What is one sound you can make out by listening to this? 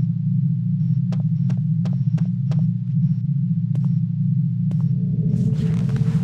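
Footsteps tap on a hard stone floor.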